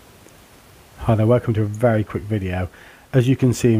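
A middle-aged man speaks calmly into a headset microphone.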